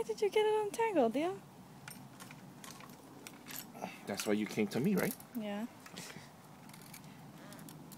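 A metal saw chain rattles and clinks.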